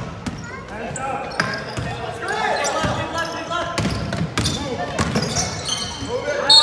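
Spectators shout and cheer nearby.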